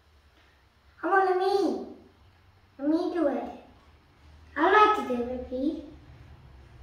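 A young child speaks excitedly close by.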